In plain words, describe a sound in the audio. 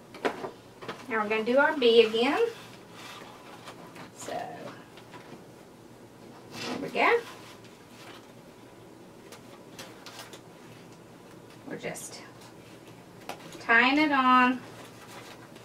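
A woman speaks calmly nearby in short bursts.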